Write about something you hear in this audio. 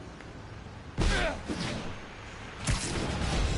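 A rushing whoosh sweeps past as a figure swings through the air.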